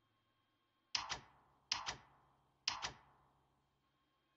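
Short electronic notification chimes ring out in quick pairs.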